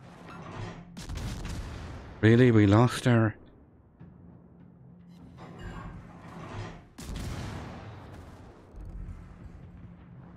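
Naval guns fire with heavy booms.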